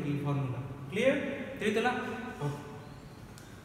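A man explains something calmly nearby.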